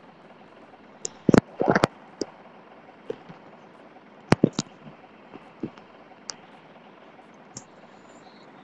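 Keyboard keys click quickly as text is typed.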